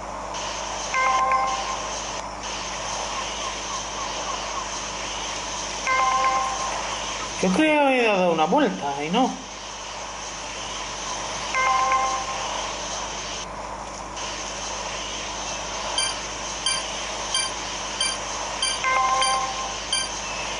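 A game chimes as a ring is passed.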